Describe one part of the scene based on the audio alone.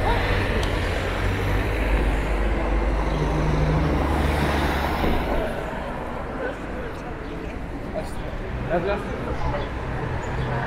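Traffic rumbles past on a nearby street.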